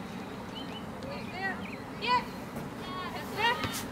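Young women shout to each other across an open outdoor field.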